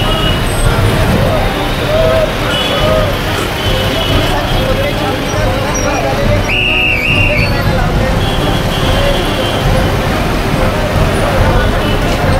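Motor scooters and auto-rickshaws drive past on a busy street.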